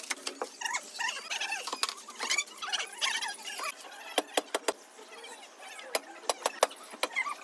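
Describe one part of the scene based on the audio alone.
A trowel handle taps on clay tiles in sharp knocks.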